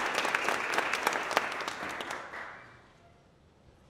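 An audience applauds loudly in a large hall, then fades out.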